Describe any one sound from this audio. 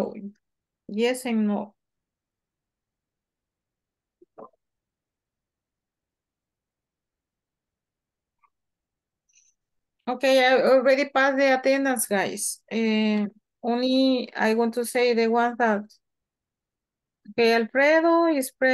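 A woman speaks clearly and calmly through a microphone, with pauses.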